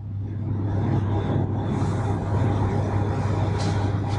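Grain pours into a machine with a rushing hiss.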